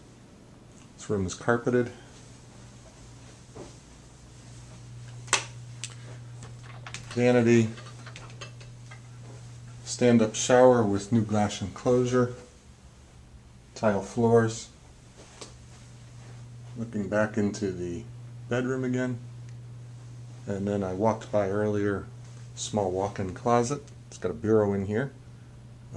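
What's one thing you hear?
A man talks calmly close by, in short phrases with pauses.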